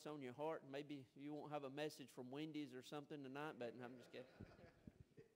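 A man speaks with animation through a microphone in an echoing room.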